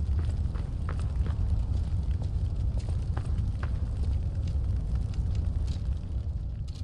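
Footsteps tread on hard ground at a steady pace.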